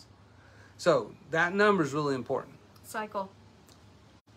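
A middle-aged man talks with animation, heard through a microphone.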